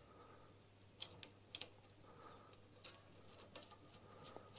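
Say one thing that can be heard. Small metal parts click and tap together.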